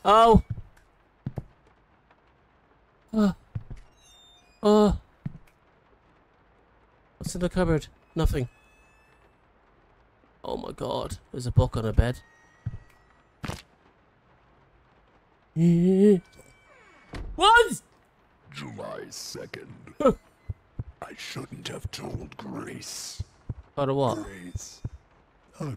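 A man talks into a close microphone in bursts, with animation.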